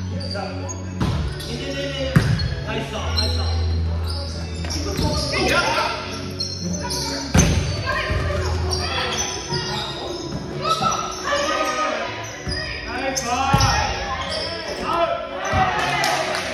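A volleyball is struck with sharp slaps, echoing in a large hall.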